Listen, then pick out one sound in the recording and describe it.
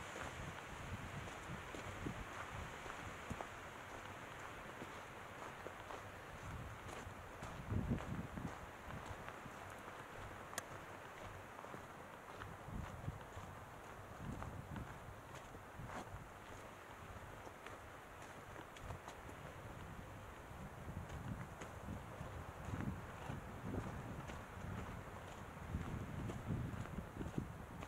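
Wind gusts rumble against the microphone outdoors.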